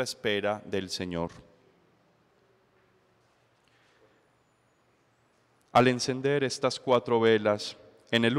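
A young man speaks calmly into a microphone, pausing between phrases.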